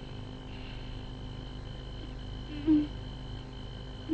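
A woman sobs, muffled by a cloth pressed to her mouth.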